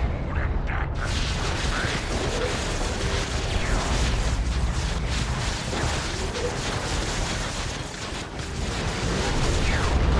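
Energy beams crackle and hum in bursts.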